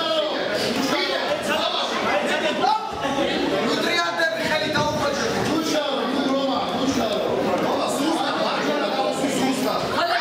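Several men and children talk and call out over each other indoors.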